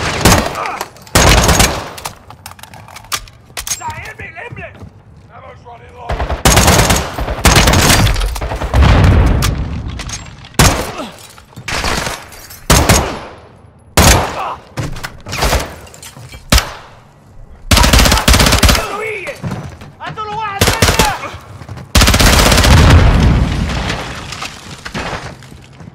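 Automatic gunfire rattles in loud bursts, echoing in a large room.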